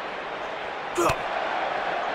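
A heavy blow lands with a sharp smack.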